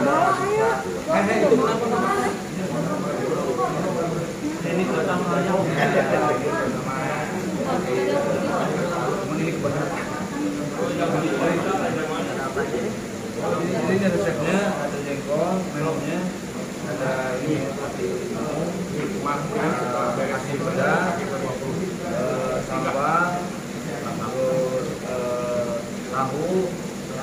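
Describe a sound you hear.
Several people chat at once in the background.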